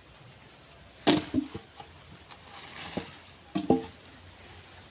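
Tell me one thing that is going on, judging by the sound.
Wooden branches thud and crack as a man handles them.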